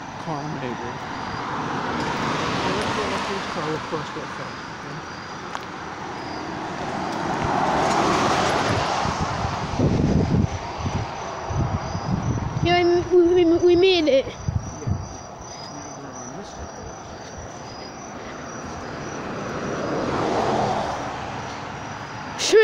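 Cars pass by on a road, swelling and fading.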